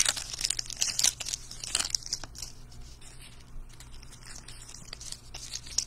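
Foil wrappers crinkle and rustle in hands.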